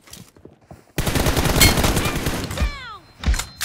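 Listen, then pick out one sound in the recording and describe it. An assault rifle fires in a rapid burst.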